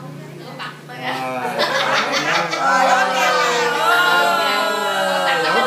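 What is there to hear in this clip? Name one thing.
A group of people sing together nearby.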